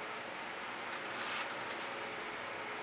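A wooden board slides and scrapes briefly across a hard surface.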